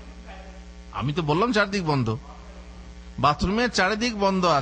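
A man speaks with animation into a microphone, close by.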